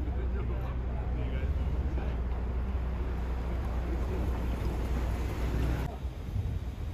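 Men talk faintly in the distance.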